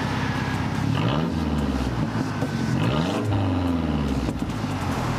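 A car engine revs up sharply twice and drops back.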